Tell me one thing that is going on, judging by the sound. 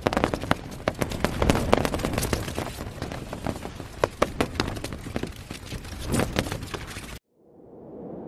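Tent fabric flaps and rustles in gusty wind.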